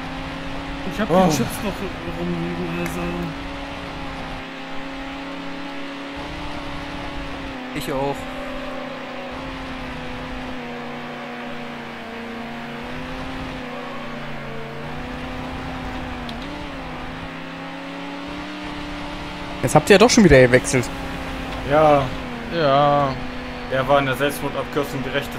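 Tyres screech around corners.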